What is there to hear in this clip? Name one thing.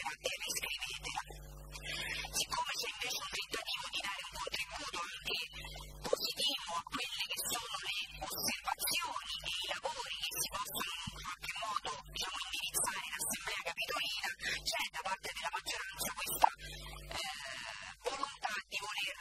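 A young woman speaks through a microphone.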